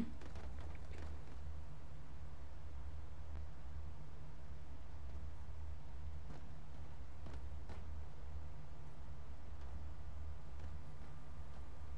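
A gun fires repeated shots.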